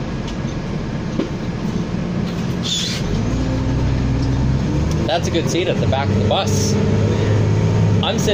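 A bus engine hums and drones steadily as the bus drives along.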